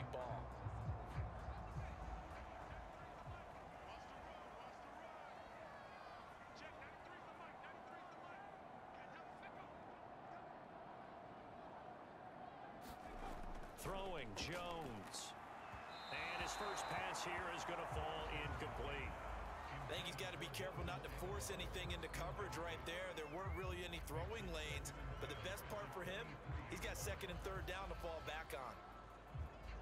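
A stadium crowd murmurs and roars in the background.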